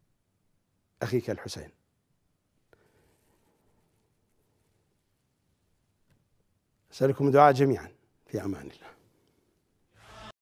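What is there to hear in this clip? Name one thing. A middle-aged man speaks emotionally into a microphone, in short bursts with long pauses.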